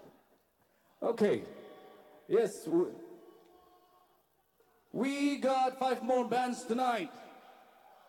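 A man sings loudly through a microphone, echoing in a large hall.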